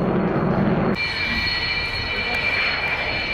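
A jet engine whines high and steady.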